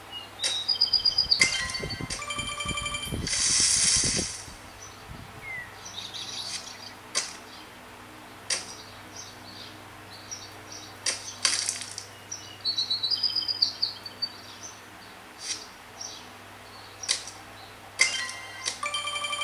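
Short knocks and thuds of a game's hits sound in quick bursts.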